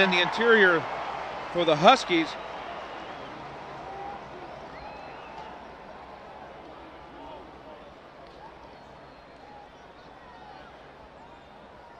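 A large stadium crowd cheers and roars, slowly fading.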